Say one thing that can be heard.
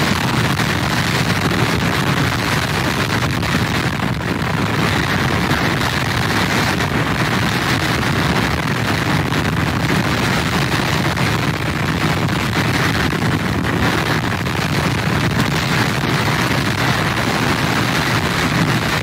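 Rain hisses down steadily.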